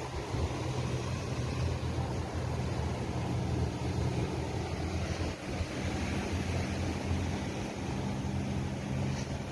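Wind blows hard outdoors, rumbling and buffeting.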